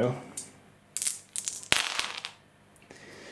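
Dice clatter and tumble across a hard tabletop.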